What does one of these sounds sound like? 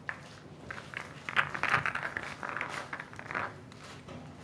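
Billiard balls clatter as they are gathered and racked.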